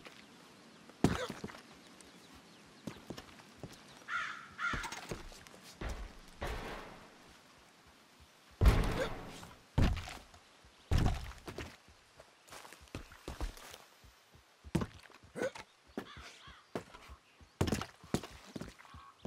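Boards knock and clatter underfoot.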